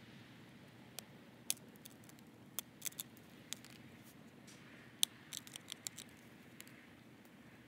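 Stone flakes snap off with sharp clicks under pressure.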